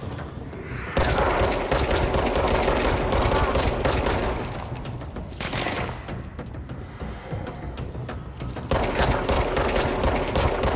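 A pistol fires several shots.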